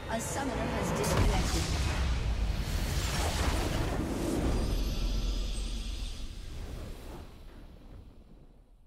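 A triumphant game fanfare swells loudly and then slowly fades.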